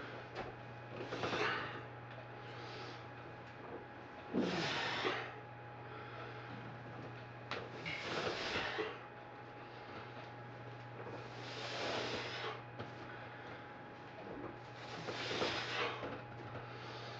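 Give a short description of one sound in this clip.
A man breathes out hard in loud, rhythmic bursts close by.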